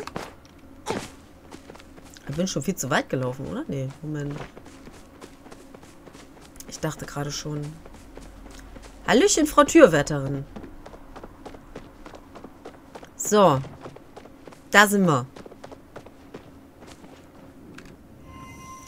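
Footsteps patter quickly on grass and stone paths.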